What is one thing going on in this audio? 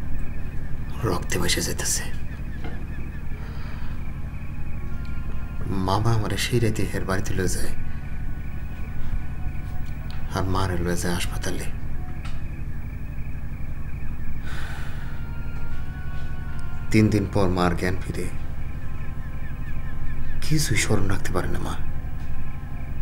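A man speaks softly, close by.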